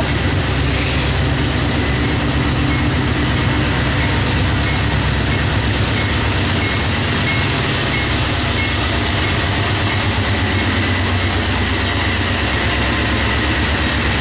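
A diesel locomotive engine rumbles as a train approaches.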